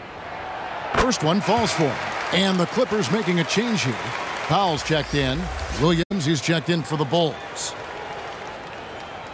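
An arena crowd cheers loudly.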